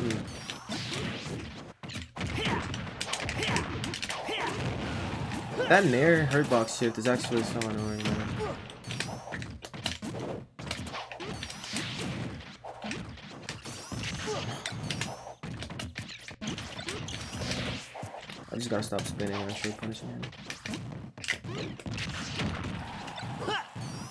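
Punches, blasts and explosions of video game fighting sound out in quick bursts.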